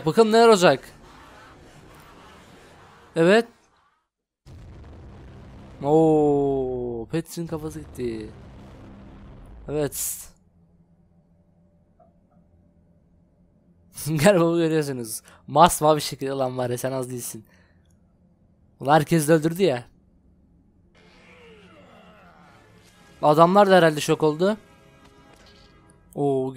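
A young man talks and exclaims with animation into a close microphone.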